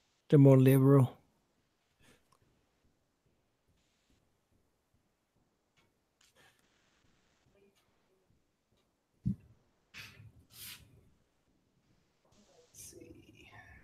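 A marker scratches softly across paper.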